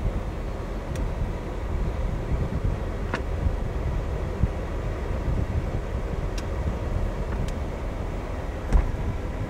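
A convertible roof's electric motor whirs steadily as the roof folds.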